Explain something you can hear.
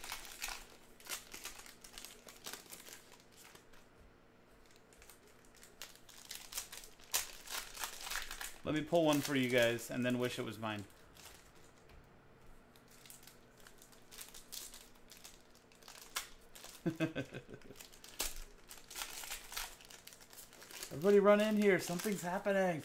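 Foil wrappers crinkle and rustle in someone's hands.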